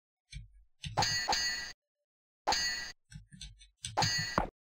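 Metal swords clash in short, sharp bursts.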